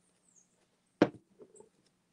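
A lid clinks against a glass jar.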